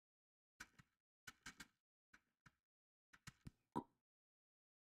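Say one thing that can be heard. Soft footsteps crunch on snow.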